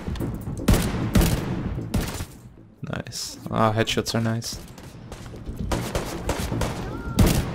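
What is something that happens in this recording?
Gunshots ring out in loud sharp bursts.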